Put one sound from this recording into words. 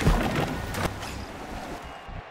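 Bursts of game combat effects crackle loudly.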